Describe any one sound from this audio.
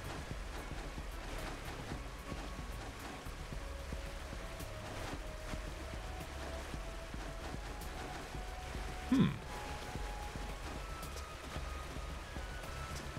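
A cascade of water rushes steadily.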